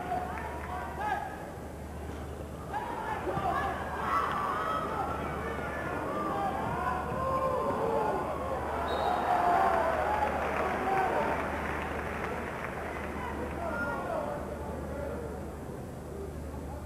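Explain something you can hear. A large crowd cheers and roars in an echoing hall.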